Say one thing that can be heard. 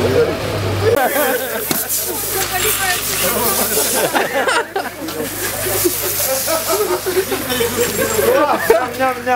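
Champagne sprays out of a bottle with a fizzing hiss.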